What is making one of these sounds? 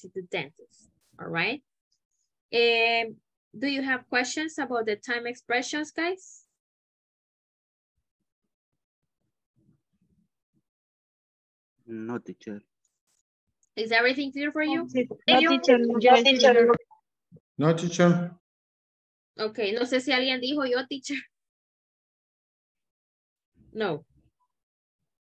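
A woman speaks calmly through an online call, explaining in short phrases with pauses.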